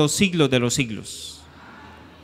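A man speaks calmly into a microphone, heard through loudspeakers.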